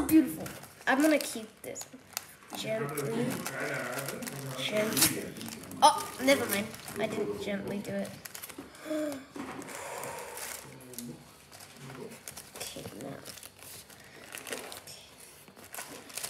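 Paper rustles and crinkles as a package is opened.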